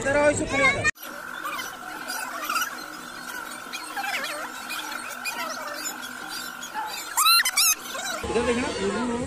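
Domestic ducks quack.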